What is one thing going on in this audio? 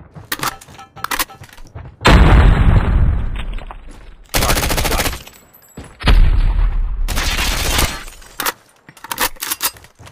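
A weapon is reloaded with metallic clicks.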